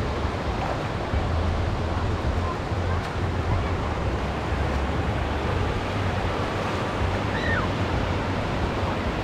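Waves wash and break steadily onto the shore.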